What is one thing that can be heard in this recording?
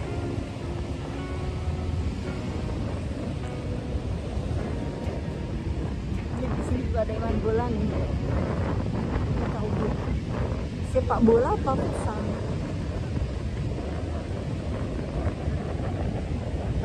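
Wind blows against the microphone outdoors.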